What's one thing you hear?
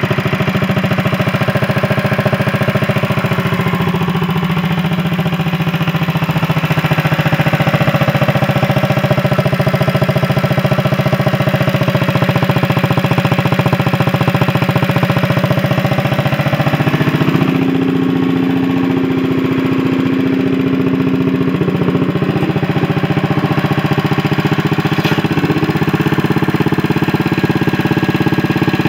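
A small engine idles with a steady, rapid chug, shifting pitch partway through.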